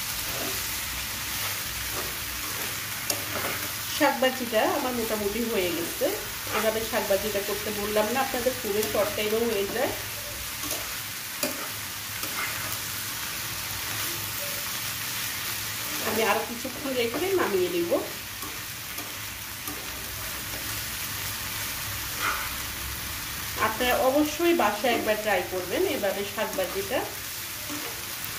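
A metal spatula scrapes and clatters against a frying pan.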